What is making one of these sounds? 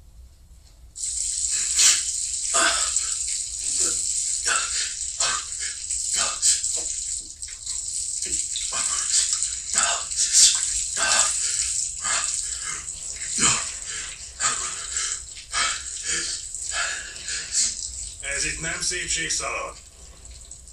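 Water runs and splashes from a tap.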